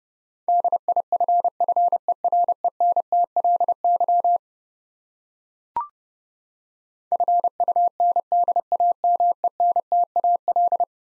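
A Morse code key beeps out quick, steady dots and dashes.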